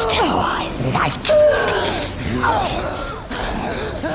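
A young woman whimpers and cries out in fear.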